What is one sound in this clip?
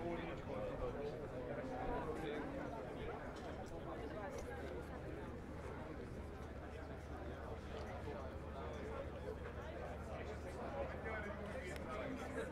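Several men and women chatter nearby outdoors.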